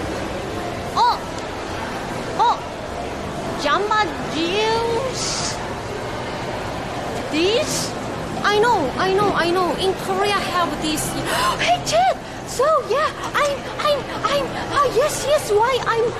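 A young woman talks close to the microphone with animation.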